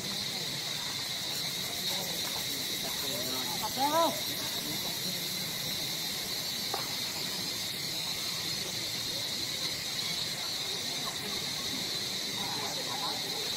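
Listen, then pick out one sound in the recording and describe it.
A monkey splashes softly through shallow water.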